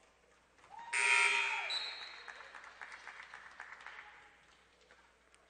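Spectators cheer and clap in an echoing hall.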